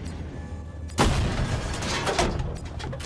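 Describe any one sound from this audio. A tank cannon fires with a loud, sudden boom.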